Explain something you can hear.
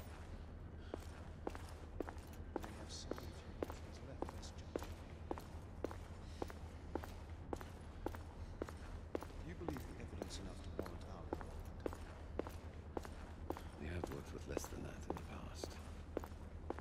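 Footsteps knock steadily on a hard floor at a walking pace.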